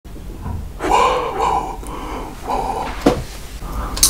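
A young man speaks close to a microphone with animation.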